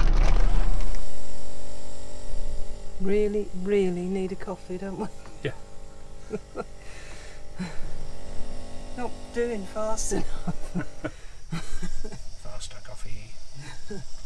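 A coffee machine hums steadily.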